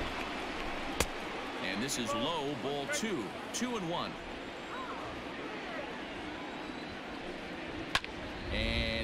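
A ball smacks sharply into a catcher's mitt.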